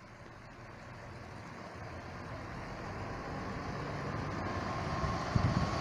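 A bus engine rumbles, growing louder as the bus approaches and passes close by.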